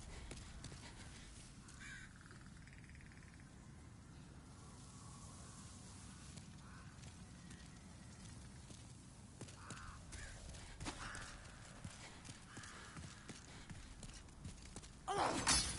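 Armoured footsteps run over stone.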